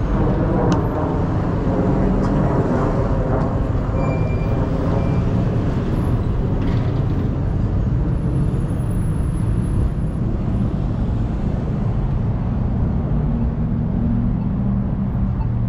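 Wind buffets outdoors with a low steady roar.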